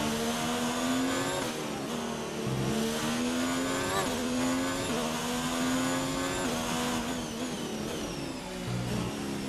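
A racing car engine screams at high revs, rising in pitch and dropping sharply with each gear change.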